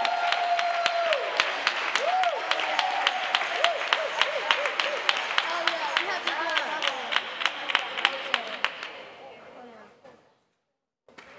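A group of children sings together.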